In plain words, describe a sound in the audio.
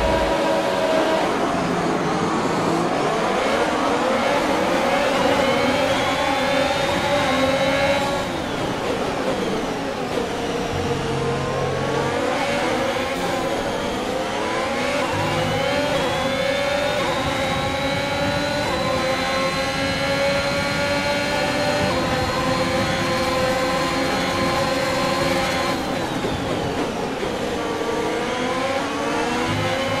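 A racing car engine screams, rising in pitch through the gears and dropping when braking.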